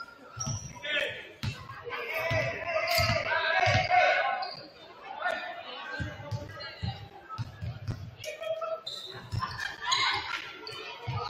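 Basketballs bounce with hollow thuds on a hard floor in a large echoing hall.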